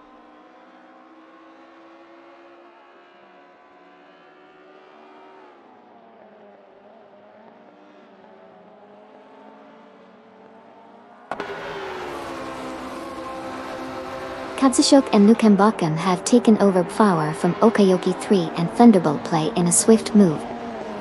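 A racing car engine drones, rising and falling in pitch.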